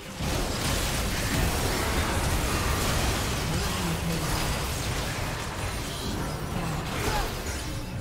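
Spell effects crackle and blast in a fast game fight.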